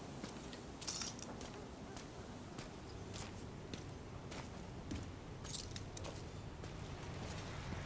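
Footsteps tap on a hard stone path.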